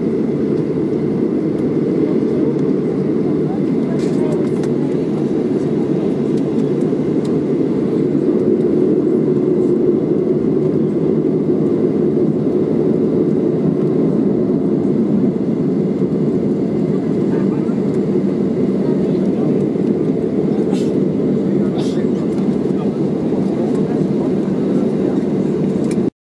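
A jet airliner's engines roar steadily, heard from inside the cabin.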